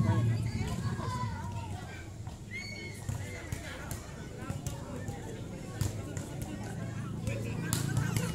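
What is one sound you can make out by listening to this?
A crowd of children and young people shout and call out outdoors.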